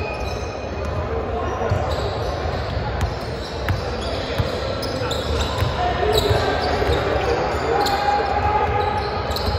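A crowd of young people chatters in the background.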